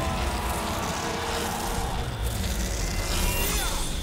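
A torch of fire roars.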